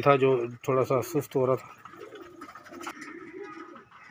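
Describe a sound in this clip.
Pigeons coo softly close by.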